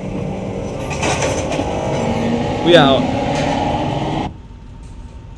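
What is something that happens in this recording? A transit car rumbles and hums as it travels.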